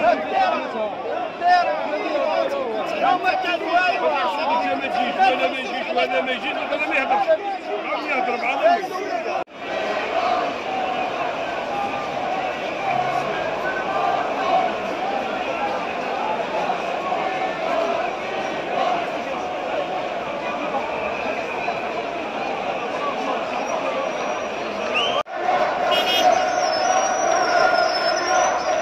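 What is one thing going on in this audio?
A large crowd chants and shouts outdoors.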